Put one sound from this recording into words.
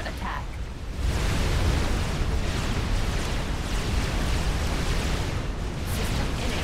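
Explosions boom and rumble heavily.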